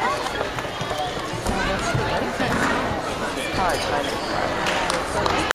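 A crowd of girls and women chatter in a large echoing gym.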